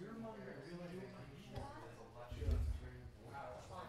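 Plastic game pieces clatter softly on a table.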